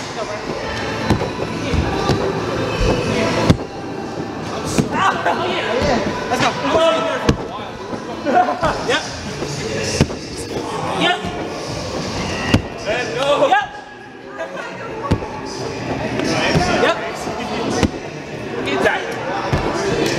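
Young men shout and cheer with excitement in a large echoing hall.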